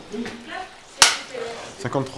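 A clapperboard snaps shut with a sharp clack.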